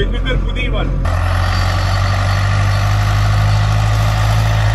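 Outdoors, a tractor engine rumbles steadily.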